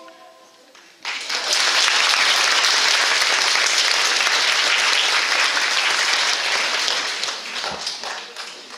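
Young children clap their hands together in a loud, steady burst of applause that fades toward the end.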